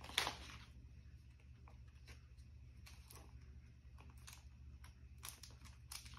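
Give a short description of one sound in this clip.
Small plastic pieces click softly between fingers.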